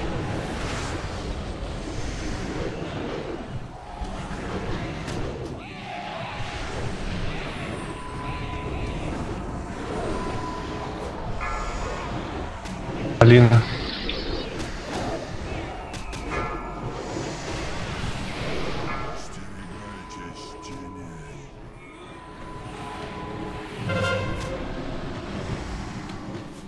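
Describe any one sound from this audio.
Magic spells crackle and boom in a hectic battle.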